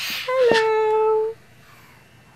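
A child sings a long high note close up.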